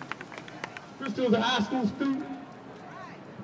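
A man speaks loudly into a microphone, heard through a loudspeaker outdoors.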